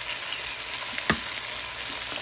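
An egg cracks against a pan's edge.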